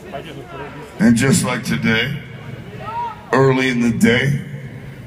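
A young man close by talks loudly over the music.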